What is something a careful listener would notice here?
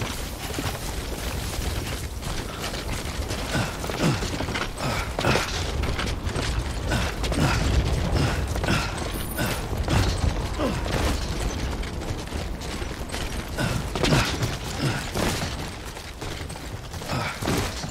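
Footsteps crunch on rough ground at a steady walking pace.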